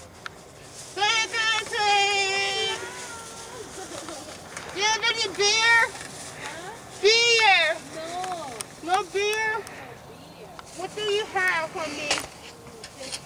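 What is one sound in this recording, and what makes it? A person shouts in a high-pitched voice from behind a window.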